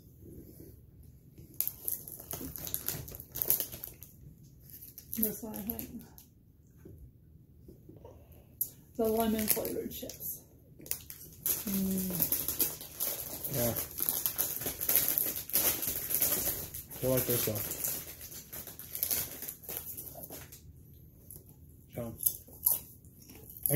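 A man crunches on food while eating.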